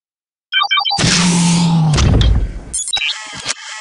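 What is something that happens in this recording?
A heavy mechanical panel slides open with a loud whoosh and rumble.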